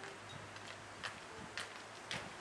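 Footsteps fall on a paved path outdoors.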